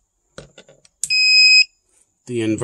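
A battery charger gives a steady electronic beep.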